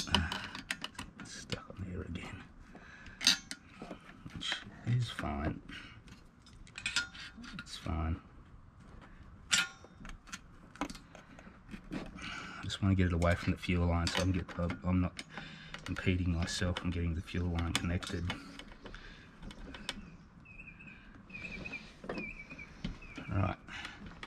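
A screwdriver scrapes and clicks against metal screws.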